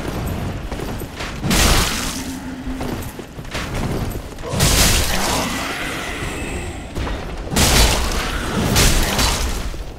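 Heavy blades swing and strike with loud slashing hits.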